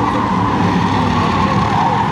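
Tyres screech on asphalt as the cars slide through a turn.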